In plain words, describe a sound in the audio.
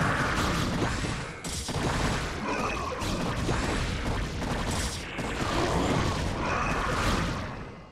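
Game creatures screech and hiss as they clash in battle.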